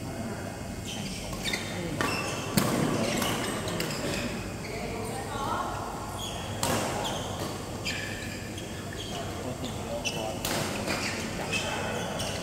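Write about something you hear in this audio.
Shoes squeak sharply on the court floor.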